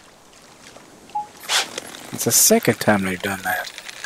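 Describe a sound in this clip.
Water splashes as a fish strikes at a lure.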